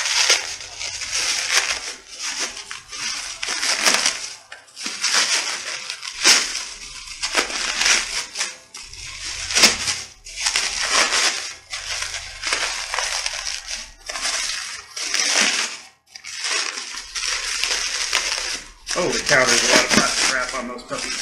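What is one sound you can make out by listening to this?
Plastic wrapping crinkles and rustles up close.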